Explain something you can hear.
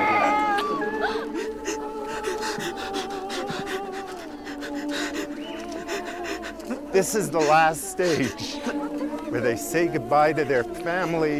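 A man weeps and sobs close by.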